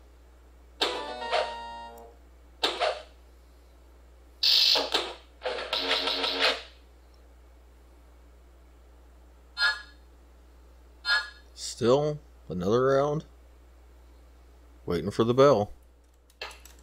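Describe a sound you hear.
Video game spell effects chime, whoosh and crackle in short bursts.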